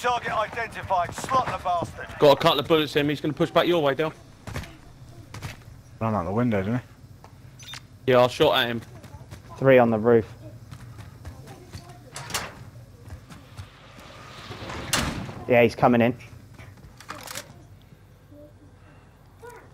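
Footsteps thud on concrete stairs.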